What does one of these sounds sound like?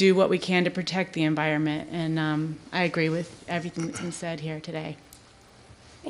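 A woman speaks with animation into a microphone in an echoing room.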